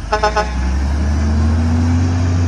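A garbage truck's hydraulic arm whines as it lifts a bin.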